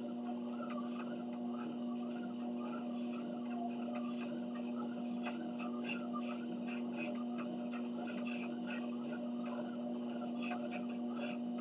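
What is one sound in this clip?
Footsteps thud rhythmically on a treadmill belt.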